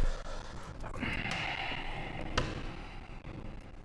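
Papers rustle on a desk.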